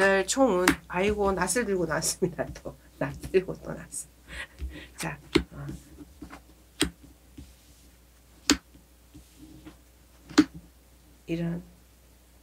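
Cards slide and tap on a table.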